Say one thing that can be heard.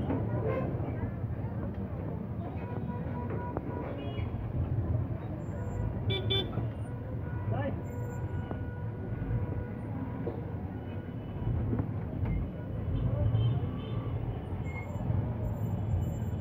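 Horns beep now and then in the traffic.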